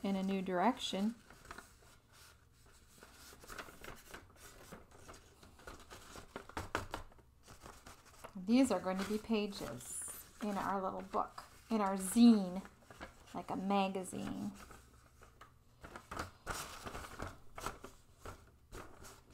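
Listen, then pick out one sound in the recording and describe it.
Stiff paper rustles and crinkles as it is folded by hand.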